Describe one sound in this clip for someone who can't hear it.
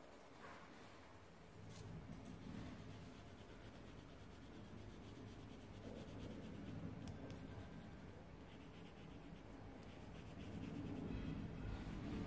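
A coloured pencil scratches steadily across paper.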